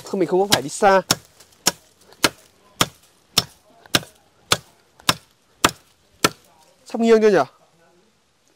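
A machete chops into wood with sharp, regular strikes.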